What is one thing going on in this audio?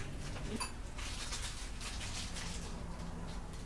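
Plastic wrappers crinkle as they are torn open.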